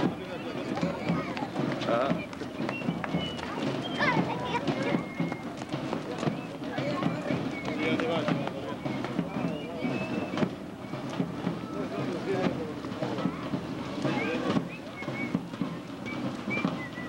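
A crowd of children chatter and call out outdoors.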